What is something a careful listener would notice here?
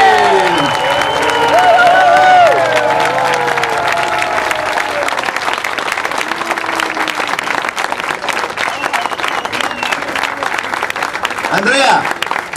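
A crowd claps rhythmically.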